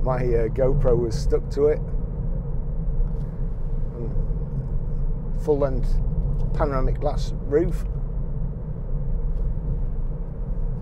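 A car engine hums steadily with road noise from inside the car.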